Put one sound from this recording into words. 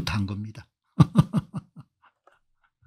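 A middle-aged man laughs in short bursts.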